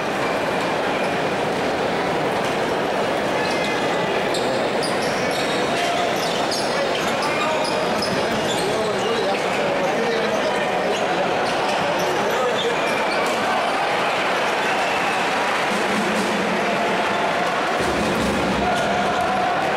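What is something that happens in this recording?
A large crowd cheers and chatters loudly in a big echoing arena.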